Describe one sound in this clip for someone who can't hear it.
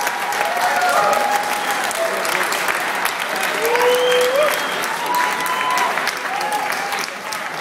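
Live electronic music plays loudly through speakers.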